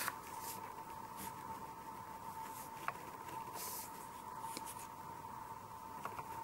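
A tool scrapes and scratches across a painted surface.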